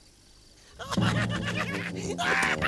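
A small creature screams in a shrill, high voice.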